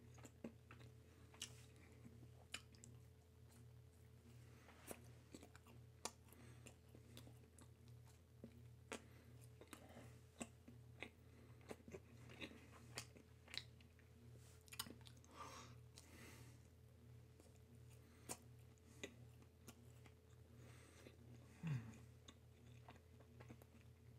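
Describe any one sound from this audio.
A man chews and smacks his lips loudly close by.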